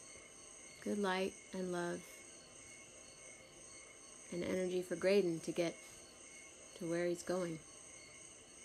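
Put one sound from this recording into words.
A woman sings short, held notes close to the microphone.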